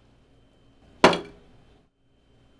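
A plate is set down on a table with a clunk.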